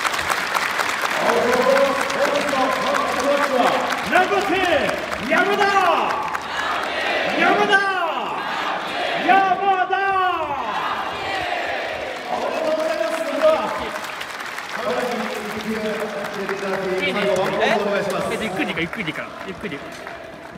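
A young man speaks calmly through a microphone and loudspeakers, echoing across an open stadium.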